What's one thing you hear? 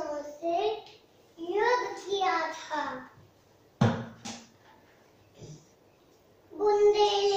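A young girl speaks in a clear, lively voice, close by.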